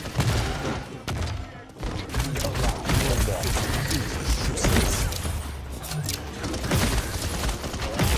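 A game's energy gun fires in rapid bursts.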